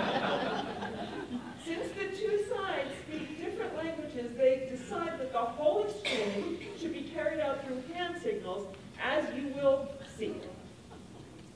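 A middle-aged woman speaks with animation.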